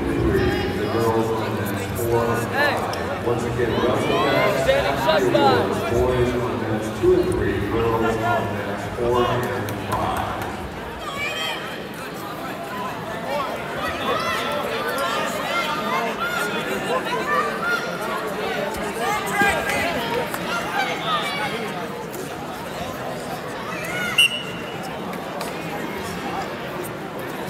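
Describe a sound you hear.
A crowd of spectators shouts and cheers, echoing in a large hall.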